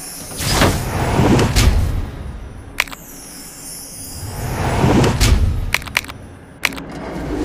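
Swooshing, sparkling reward effects play in bursts.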